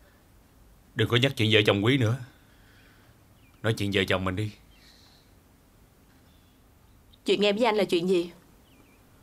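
A young woman speaks quietly nearby.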